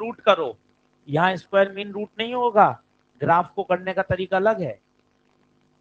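A man speaks calmly and clearly into a microphone, explaining.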